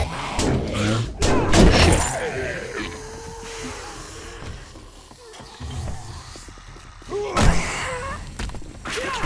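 Zombies snarl and screech.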